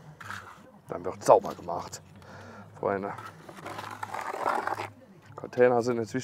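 A trowel scrapes wet mortar.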